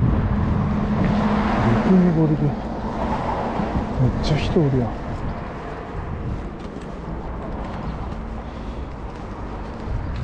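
Footsteps crunch on a path and dry grass.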